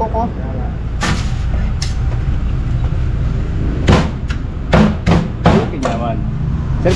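A cleaver chops on a wooden block with sharp thuds.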